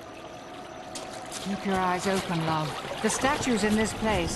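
Water splashes gently in a fountain.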